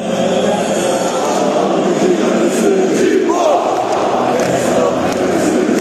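A huge stadium crowd chants and sings loudly in unison.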